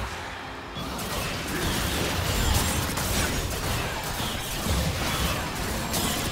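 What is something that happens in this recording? Game characters clash with magical blasts and hits.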